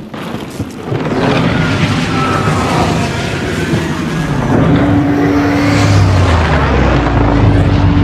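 A spaceship's engines roar loudly as it flies close by.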